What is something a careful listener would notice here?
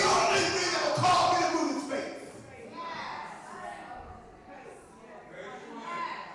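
A man speaks with animation into a microphone, heard through loudspeakers in an echoing room.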